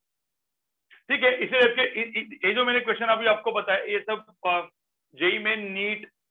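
A man explains calmly, heard close through a microphone.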